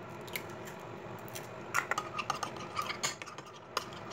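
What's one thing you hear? An egg cracks against a dish.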